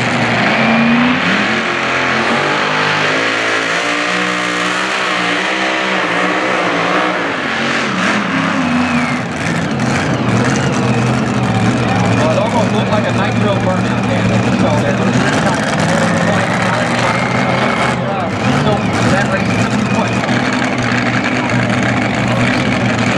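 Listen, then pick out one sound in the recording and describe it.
A powerful pulling tractor engine roars loudly, rising and falling in pitch.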